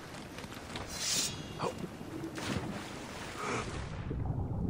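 A splash sounds as a diver plunges into water.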